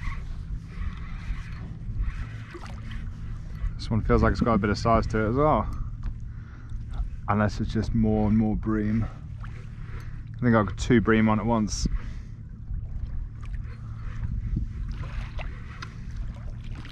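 Water laps against the hull of a kayak.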